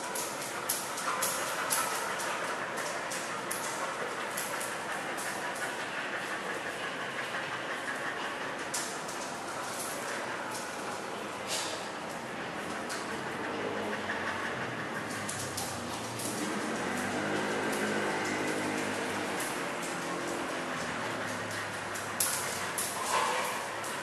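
A dog pants quickly.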